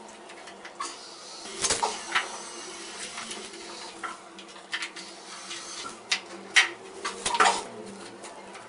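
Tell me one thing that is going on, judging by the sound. A shower tray knocks and scrapes against blocks as it is set in place.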